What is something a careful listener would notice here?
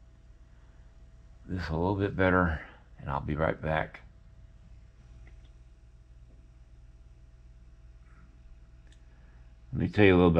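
Fingers softly press and smooth clay.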